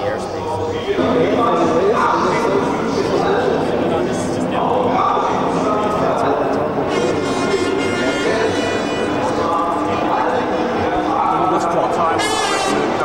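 A man speaks calmly into microphones close by.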